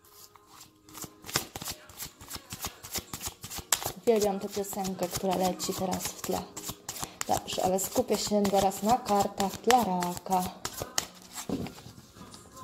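A deck of cards is shuffled by hand, with quick flicking and rustling.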